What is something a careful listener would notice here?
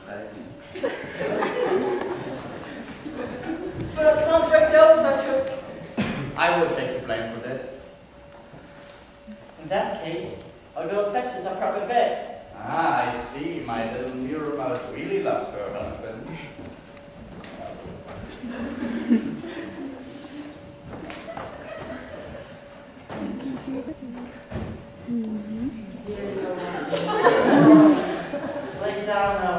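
A young woman speaks loudly with emotion in a hall.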